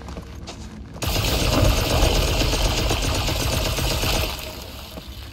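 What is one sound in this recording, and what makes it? A magic spell crackles and hisses loudly.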